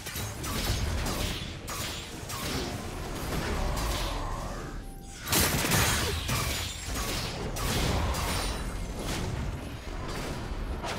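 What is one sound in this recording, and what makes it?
Game characters strike with sharp hits and clashes.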